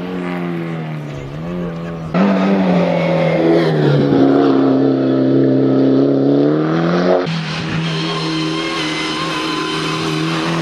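A rally car engine roars loudly, revving up and down as the car speeds through a bend.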